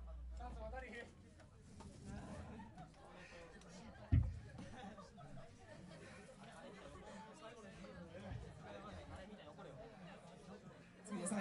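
A man talks casually into a microphone, heard through loudspeakers.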